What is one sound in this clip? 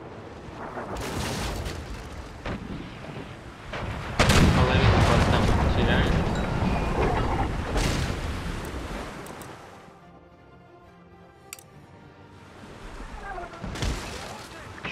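Cannons fire with heavy booms.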